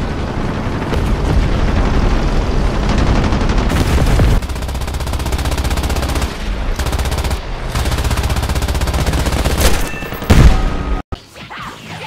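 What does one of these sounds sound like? A propeller engine drones loudly and steadily.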